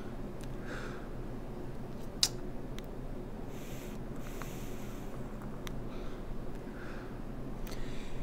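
A man exhales a cloud of vapour with a soft breathy puff.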